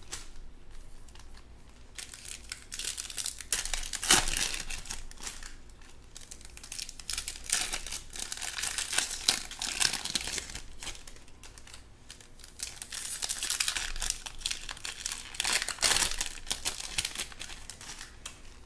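Trading cards rustle and slide against each other as they are shuffled and sorted by hand.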